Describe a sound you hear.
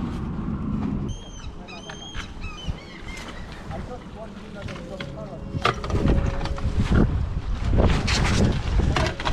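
River water laps and splashes against a rocky shore.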